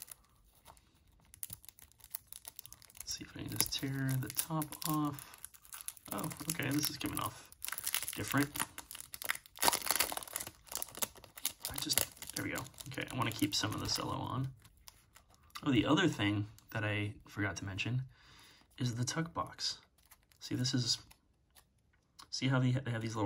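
Cellophane wrap crinkles and crackles between fingers.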